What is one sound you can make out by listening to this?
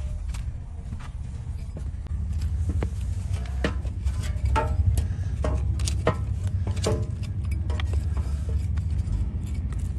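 A blade cuts and scrapes through a horse's hoof.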